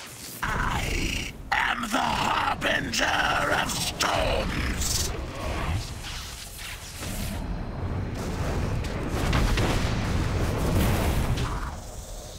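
Electric spells crackle and zap.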